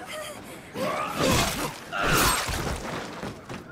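Metal blades clash loudly.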